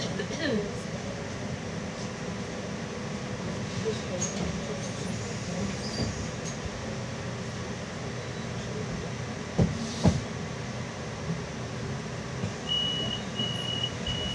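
A bus engine rumbles low and steadily from inside the bus.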